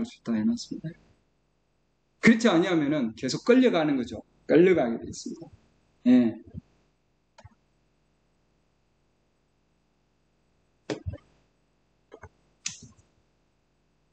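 An elderly man speaks calmly over an online call, with pauses.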